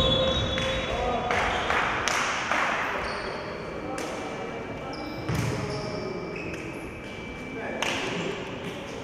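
Sneakers squeak on a hard court in an echoing hall.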